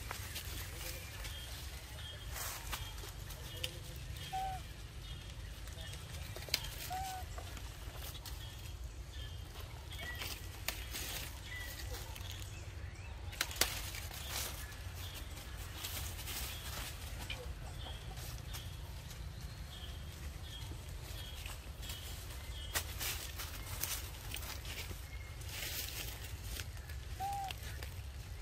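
A small monkey scrambles on a tree branch, rustling leaves.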